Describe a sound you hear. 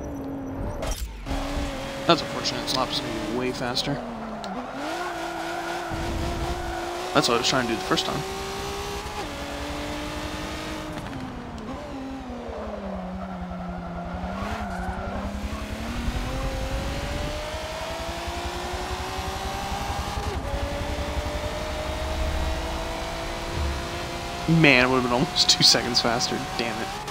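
A racing car engine revs and drones steadily, rising and falling in pitch as it shifts gears.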